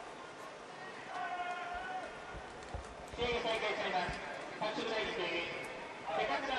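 Young men on a sideline shout and cheer loudly.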